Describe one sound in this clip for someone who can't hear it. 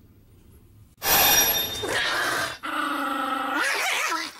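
A small puppy whines and yelps close by.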